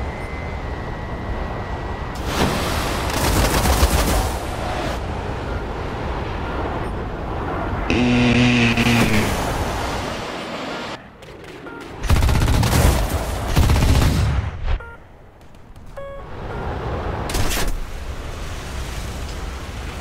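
A jet engine roars steadily with afterburner.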